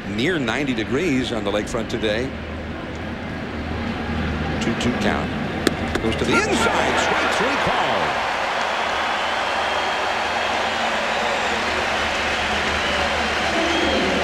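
A large stadium crowd murmurs and cheers outdoors, swelling louder.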